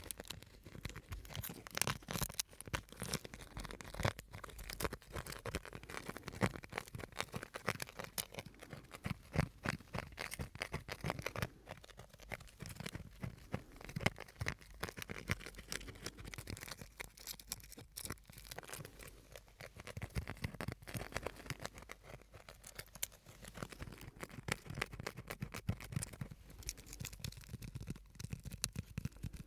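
Plastic wrapping crinkles and crackles close to a microphone.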